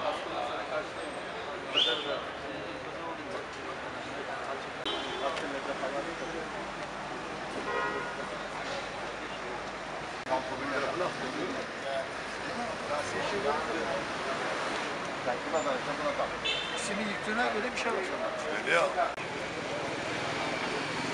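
Street traffic hums steadily outdoors.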